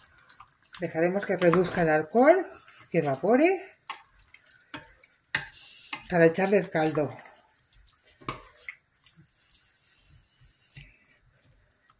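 A wooden spoon scrapes and stirs in a pot.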